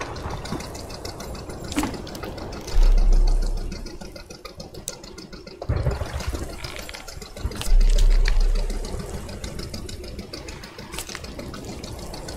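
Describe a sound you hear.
A knife slices through a fish.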